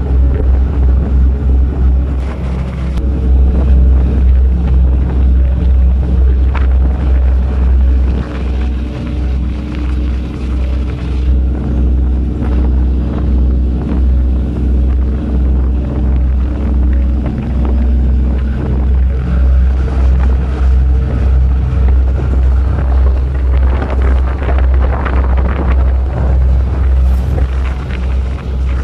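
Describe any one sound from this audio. Strong wind blows over open water.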